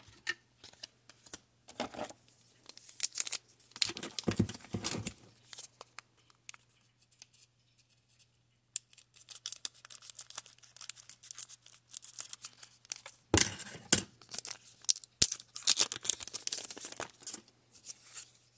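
A foil wrapper crinkles and rustles as it is handled and torn open.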